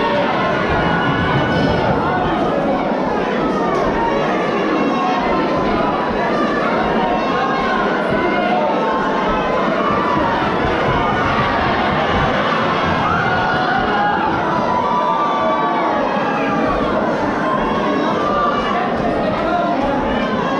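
A large crowd chatters and cheers throughout a big echoing hall.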